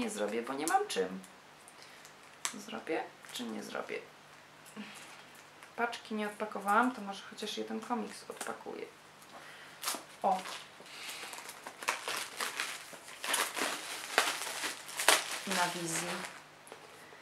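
Paper rustles as a young woman handles a page.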